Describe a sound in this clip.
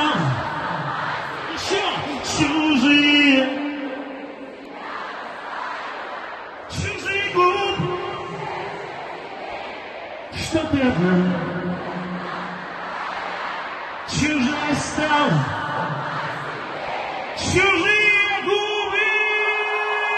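A man sings through powerful loudspeakers.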